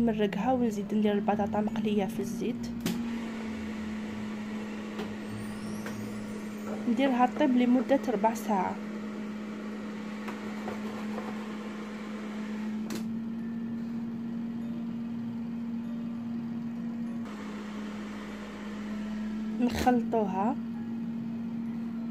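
An air fryer hums steadily.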